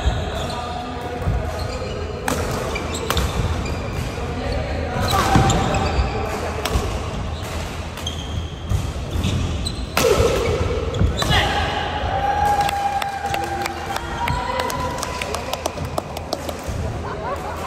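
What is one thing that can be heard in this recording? Shuttlecocks are struck with sharp pops of rackets in a large echoing hall.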